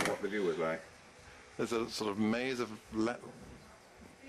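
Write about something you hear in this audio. An elderly man talks nearby.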